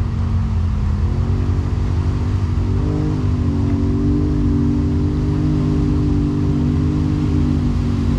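An off-road vehicle engine drones in the distance and slowly draws closer.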